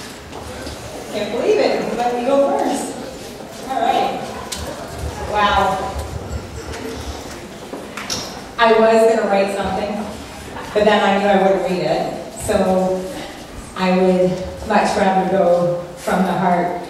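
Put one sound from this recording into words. A woman talks into a microphone, heard over loudspeakers in an echoing room.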